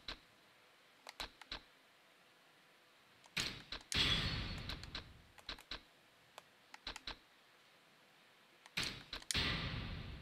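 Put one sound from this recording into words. Menu selections click and chime.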